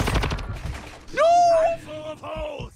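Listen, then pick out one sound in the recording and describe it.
A young man shouts in surprise.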